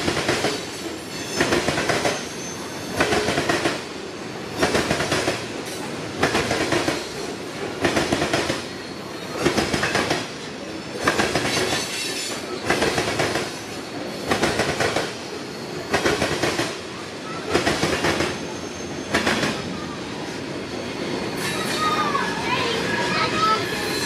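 A freight train rolls past close by with a steady rumble.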